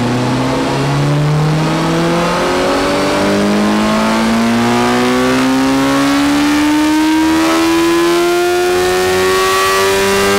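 A motorcycle engine roars loudly, climbing steadily in pitch as it revs through the gears.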